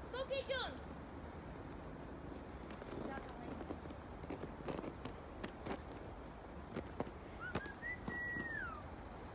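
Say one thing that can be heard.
A child squeals and shouts outdoors at a distance.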